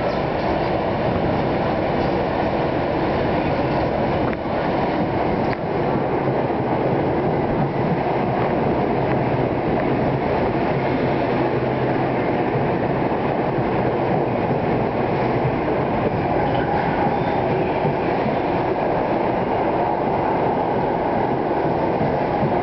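An electric commuter train arrives and rolls along the platform.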